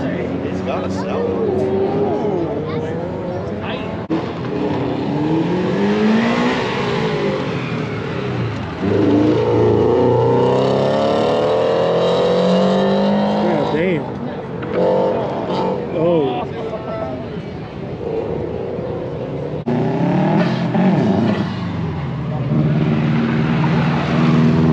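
A car engine revs hard, rising and falling as the car races around.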